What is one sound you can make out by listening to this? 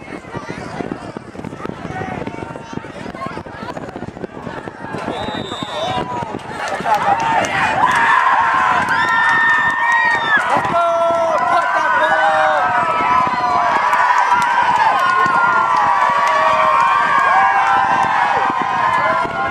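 A crowd of spectators cheers and shouts outdoors, growing louder.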